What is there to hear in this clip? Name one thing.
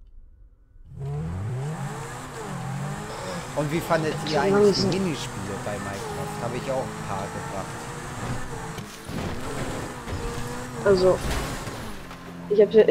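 A sports car engine roars and revs at high speed.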